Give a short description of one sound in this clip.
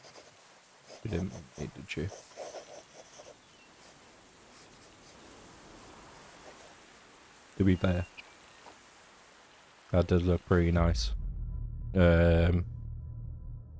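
A young man talks into a microphone in short bursts, close by.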